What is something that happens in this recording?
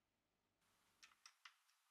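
A woman knocks on a metal door.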